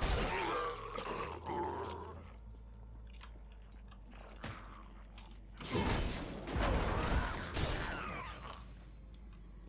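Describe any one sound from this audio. Fiery spell blasts whoosh and crackle.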